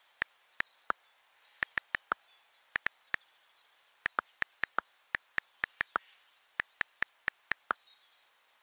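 Keyboard keys click in quick taps.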